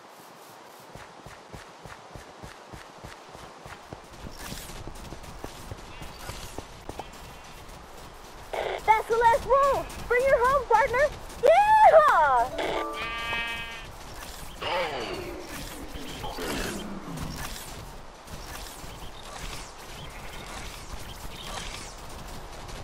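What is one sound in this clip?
Footsteps tap quickly on a hard wooden floor.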